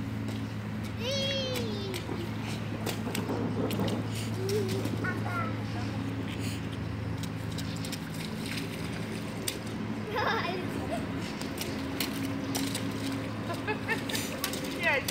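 Young children squeal and call out close by.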